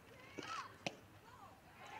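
A softball smacks into a catcher's mitt.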